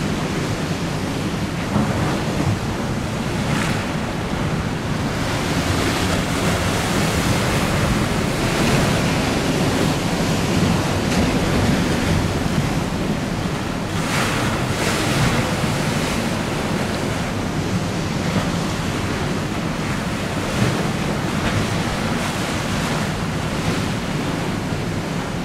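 Strong wind buffets outdoors with a steady low rumble.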